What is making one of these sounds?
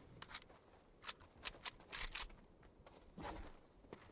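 Footsteps tap quickly on wooden planks.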